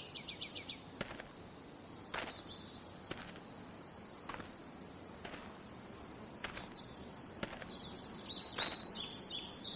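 Footsteps crunch on a forest floor.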